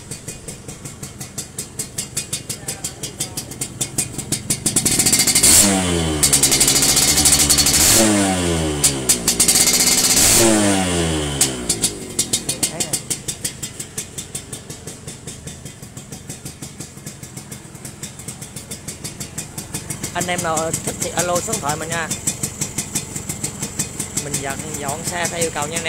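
A motorcycle engine idles with a steady, rapid putter.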